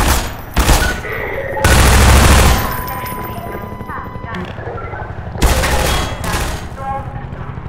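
Gunshots bang loudly in short bursts.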